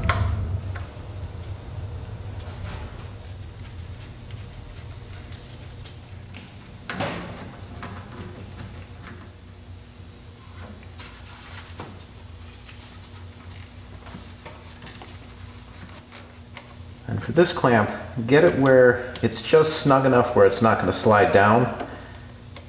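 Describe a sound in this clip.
Metal tools click and clink against an engine part.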